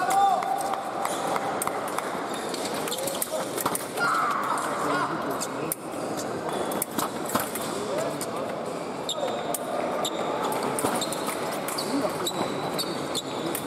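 Sport shoes squeak sharply on a hard floor.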